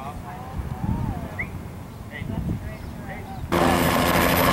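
A helicopter drones faintly far overhead.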